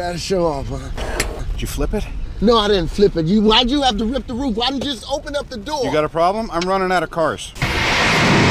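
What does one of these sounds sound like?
Men speak to each other in short exchanges.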